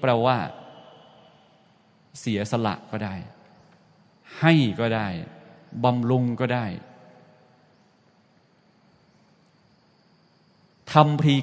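A man speaks calmly in short phrases, close to the microphone.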